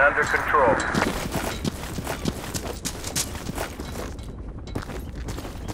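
Footsteps thud steadily on dry ground.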